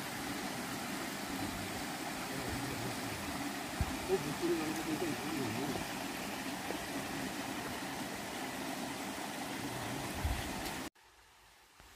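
Water trickles and splashes over rocks nearby.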